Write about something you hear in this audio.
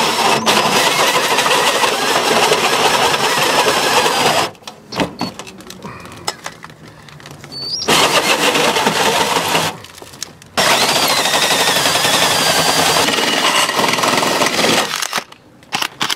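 A power drill with a hole saw grinds loudly through thin metal, stopping and starting in bursts.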